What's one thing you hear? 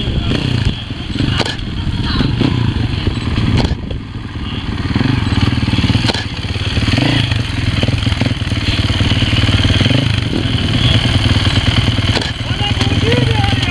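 A motorcycle engine idles and revs close by.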